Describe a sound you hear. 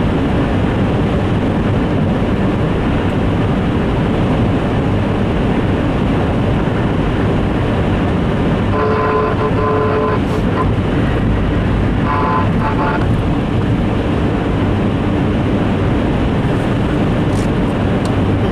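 Tyres roar on a wet road.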